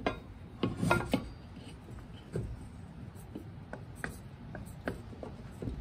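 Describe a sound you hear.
A metal bracket clinks and scrapes against a rubber part.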